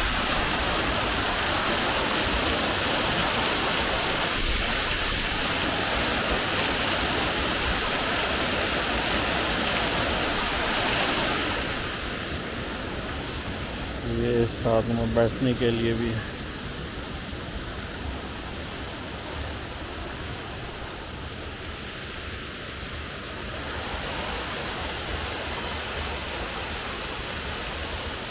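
A waterfall pours and splashes loudly close by.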